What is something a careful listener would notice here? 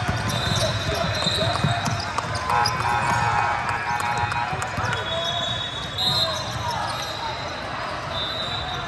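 Players and spectators chatter in a large echoing hall.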